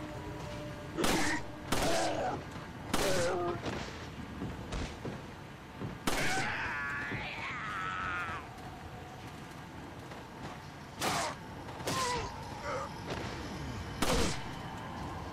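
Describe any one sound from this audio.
A pistol fires sharp, echoing shots.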